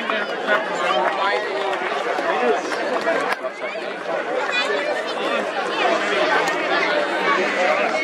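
A large crowd of men, women and children chatters loudly and close by outdoors.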